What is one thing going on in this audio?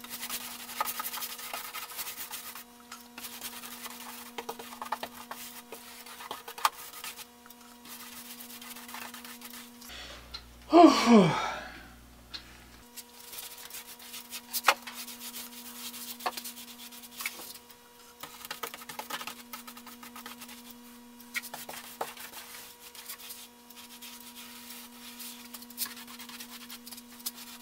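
A paintbrush swishes and scrapes as paint is brushed on.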